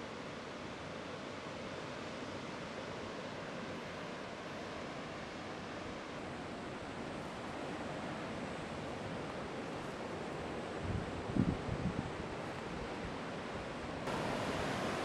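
Waves break and roar steadily.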